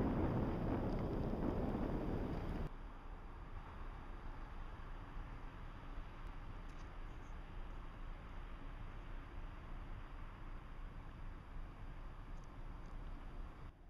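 Wind rumbles outdoors, loud at first and then much softer.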